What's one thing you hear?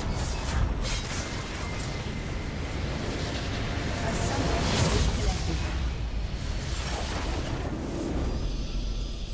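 Game spell effects crackle and boom in a fight.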